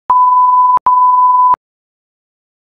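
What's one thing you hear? A steady high test tone beeps, broken once by a short gap.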